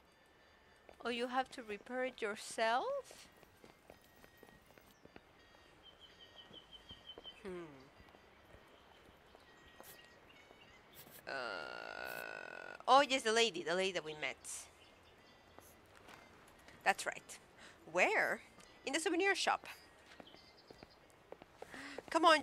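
A young woman talks casually into a close microphone, in bursts.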